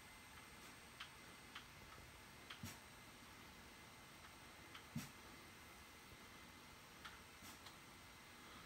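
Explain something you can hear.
Faint footsteps tap from a television speaker.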